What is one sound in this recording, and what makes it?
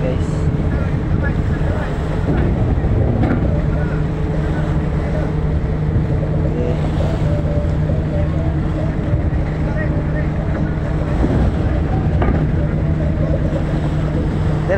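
A ship's engine rumbles steadily close by.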